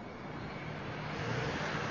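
A car engine hums as a car drives closer.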